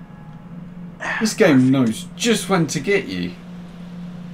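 A young man speaks briefly and calmly.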